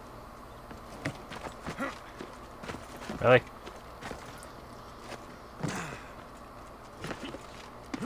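Footsteps scuff and hands thud softly while climbing a stone wall.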